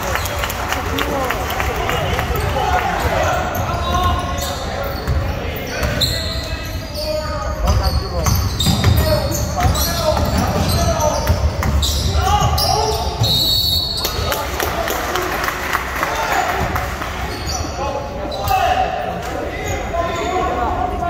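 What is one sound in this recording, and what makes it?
A crowd in an echoing gym calls out and cheers.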